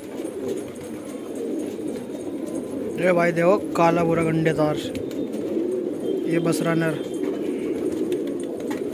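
Pigeons coo softly close by.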